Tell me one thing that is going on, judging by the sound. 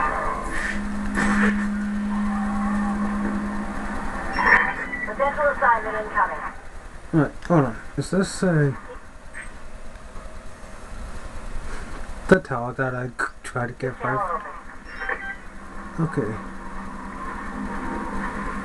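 Video game sound effects play from a television.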